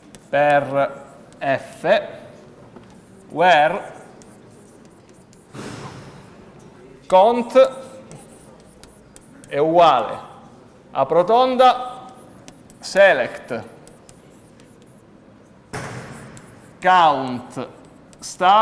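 A man speaks in pauses, echoing slightly in a large room.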